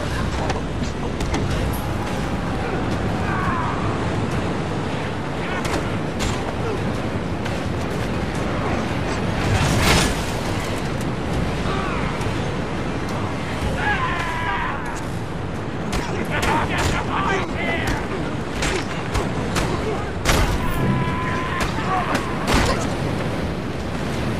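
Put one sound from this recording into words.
Punches and blows thud in a brawl.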